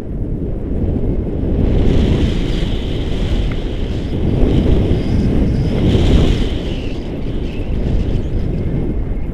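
Strong wind rushes and buffets loudly against the microphone.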